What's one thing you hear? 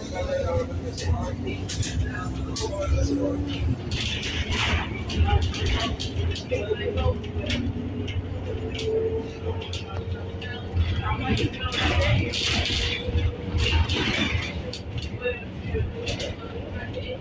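Fittings rattle and clatter inside a moving bus.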